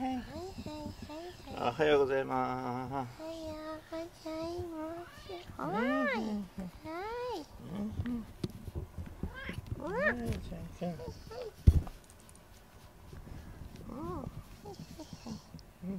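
A hand rubs and strokes a cat's fur.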